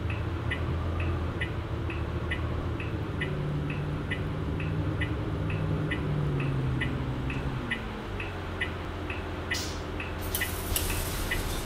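A diesel city bus engine drones while the bus slows to a stop.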